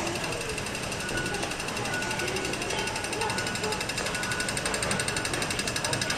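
Footsteps echo through a large, echoing indoor hall.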